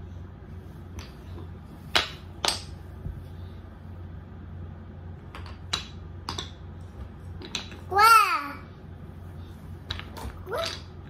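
Wooden toy rings clack together as a toddler stacks them.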